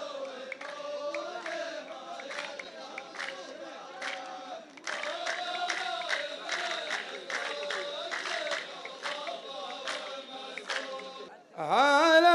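A group of men chants together outdoors.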